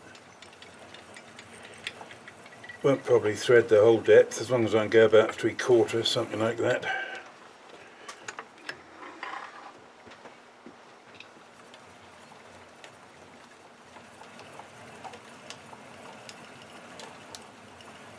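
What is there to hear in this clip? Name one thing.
A hand tap scrapes and grinds as it cuts a thread in metal.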